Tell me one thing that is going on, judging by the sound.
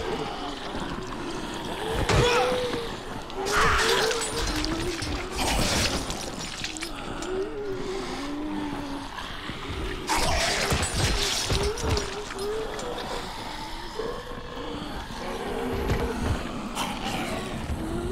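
Zombies growl and groan nearby.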